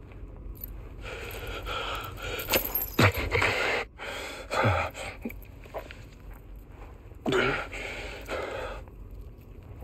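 A man speaks in a low, strained voice close by.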